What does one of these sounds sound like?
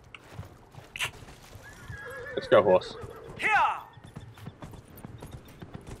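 A horse's hooves thud on soft ground at a walk.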